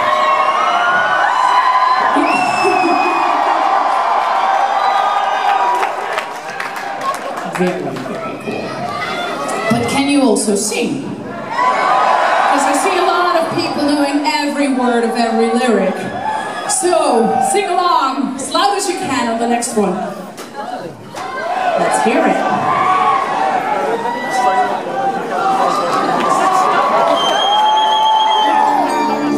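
A crowd cheers and whistles loudly in a large echoing hall.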